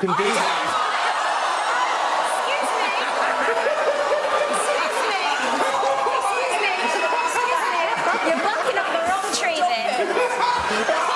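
A large crowd cheers and shouts throughout.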